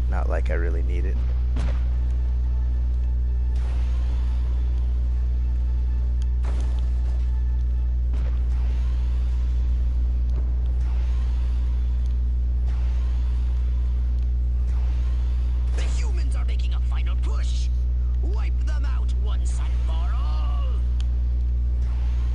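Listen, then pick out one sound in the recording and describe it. Laser beams zap and crackle in bursts.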